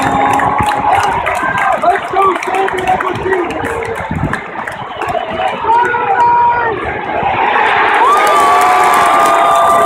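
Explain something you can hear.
A large stadium crowd chatters and shouts all around, in a wide open space.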